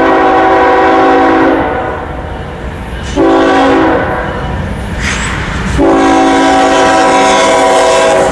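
A diesel freight locomotive rumbles as it approaches.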